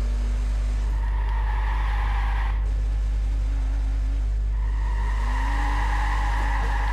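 Car tyres screech while turning sharply.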